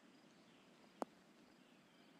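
A golf ball thuds onto the grass.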